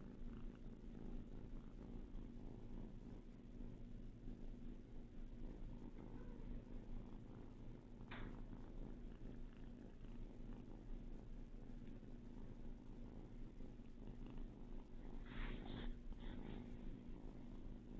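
Kittens scuffle and paw softly on a fluffy rug.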